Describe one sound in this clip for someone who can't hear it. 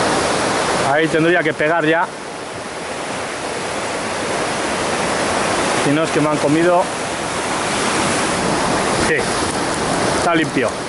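Waves crash and surge against rocks, outdoors by the sea.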